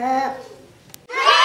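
A young girl speaks briefly, close by.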